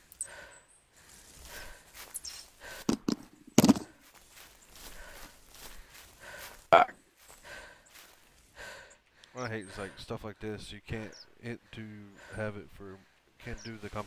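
Footsteps swish softly through grass.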